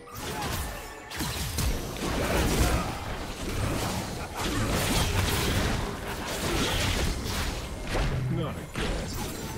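Weapon hits clash and thud in quick succession.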